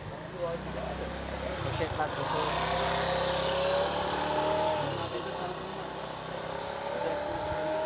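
A motor scooter engine putters nearby.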